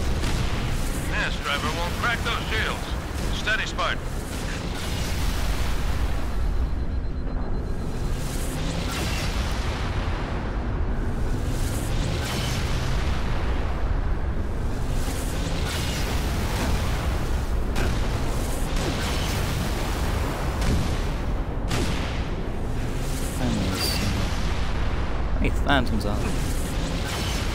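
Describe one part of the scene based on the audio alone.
A heavy gun fires in rapid bursts with loud booms.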